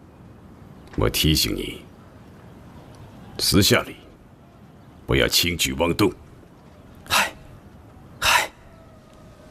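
A younger man answers briefly and tensely nearby.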